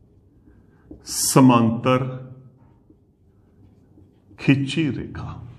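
A man speaks clearly and close by, in short phrases.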